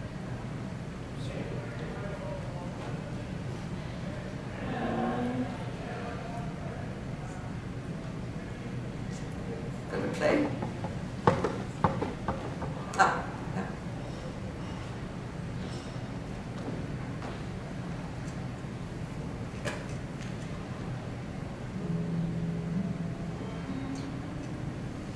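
An older woman speaks at a distance through a loudspeaker in a large, echoing hall.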